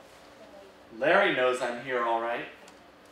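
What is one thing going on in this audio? A young man reads aloud.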